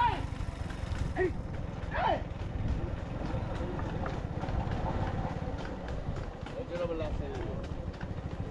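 Men talk and call out nearby.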